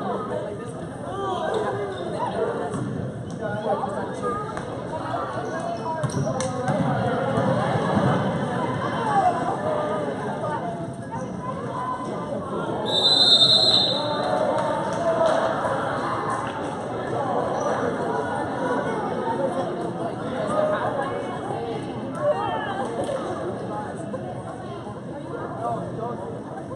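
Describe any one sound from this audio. A crowd of adults and children chatters and cheers in a large echoing gym.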